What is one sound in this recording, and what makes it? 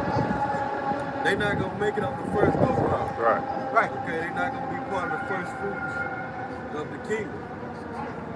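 A second young man talks up close.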